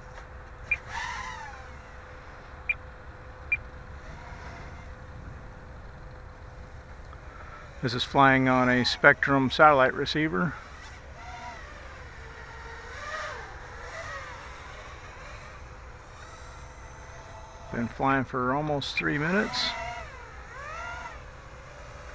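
A small drone's motors whine steadily overhead.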